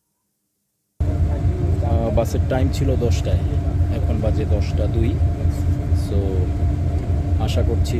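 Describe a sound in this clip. A bus engine hums low and steadily.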